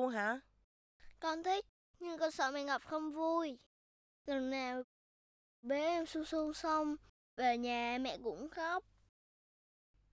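A young boy speaks close by.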